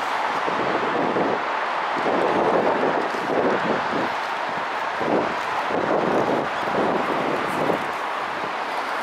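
A train rumbles past below, growing louder then fading.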